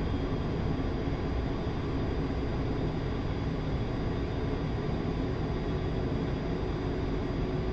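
A jet engine roars steadily from inside the cockpit.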